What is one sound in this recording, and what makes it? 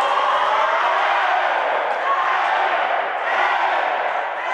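Young women shout and cheer excitedly.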